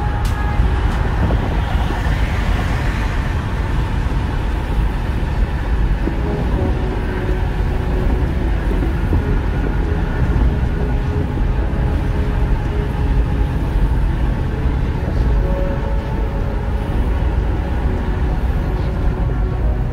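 Tyres roar steadily on a highway, heard from inside a moving car.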